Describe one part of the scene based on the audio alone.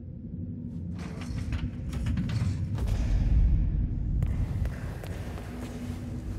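A metal bed frame creaks and rattles as a man gets up from it.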